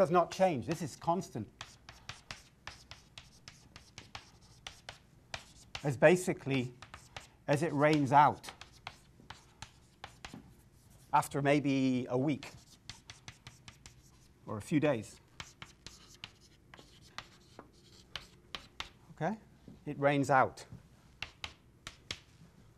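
Chalk taps and scrapes on a chalkboard in quick strokes.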